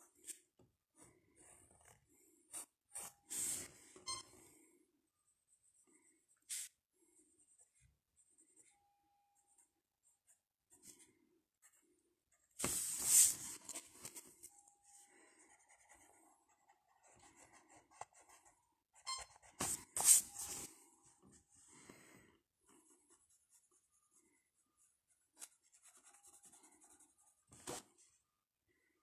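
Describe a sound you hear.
A pencil scratches and scrapes on paper, close up.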